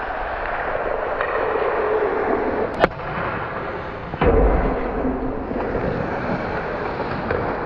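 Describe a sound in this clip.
Skate blades scrape across ice.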